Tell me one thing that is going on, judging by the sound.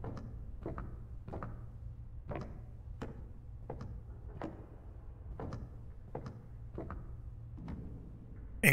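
Soft footsteps tap slowly on a hard floor.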